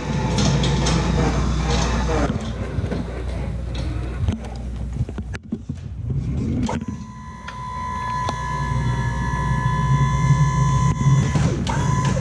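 An electric pallet truck hums and whines as it moves.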